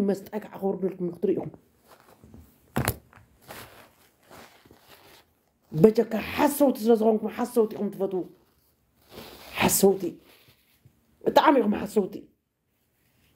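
A middle-aged woman speaks with animation, close to a microphone.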